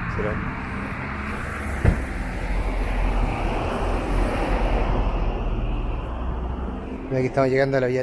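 Traffic rumbles past on a nearby road.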